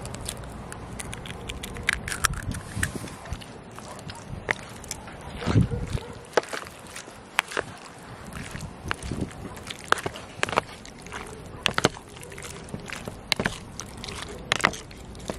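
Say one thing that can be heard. A wooden spoon stirs wet chunks of meat in a plastic tub, squelching and clicking.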